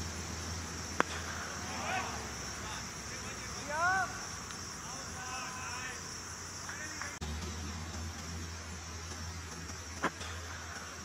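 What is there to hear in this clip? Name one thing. A cricket bat strikes a hard leather ball with a sharp crack.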